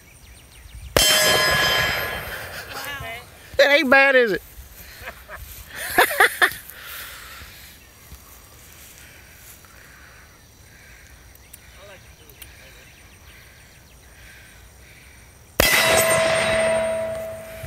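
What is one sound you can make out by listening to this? A pistol shot cracks outdoors and rings out.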